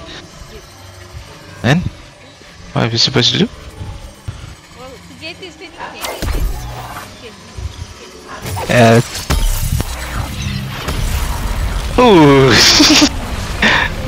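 A magical energy burst crackles and rumbles.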